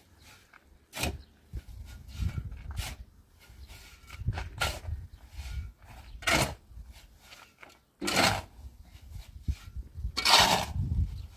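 Sand and gravel rattle as they pour into a metal wheelbarrow.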